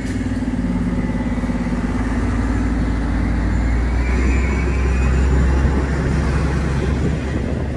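City traffic hums steadily in the street.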